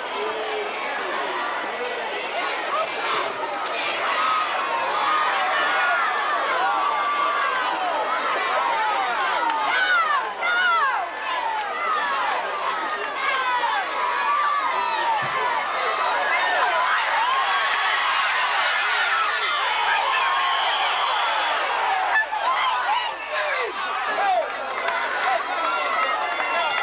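A large crowd cheers and shouts excitedly outdoors.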